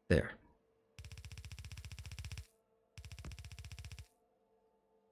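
Electric arcs crackle and buzz in two short bursts.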